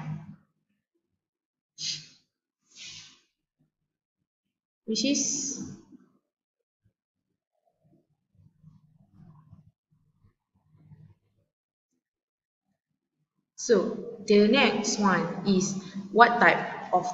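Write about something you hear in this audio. A young woman speaks calmly through a computer microphone, with long pauses.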